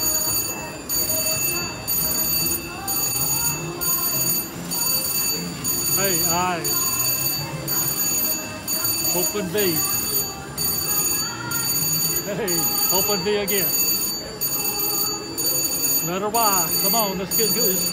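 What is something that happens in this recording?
A slot machine plays electronic jingles and chimes as its reels spin.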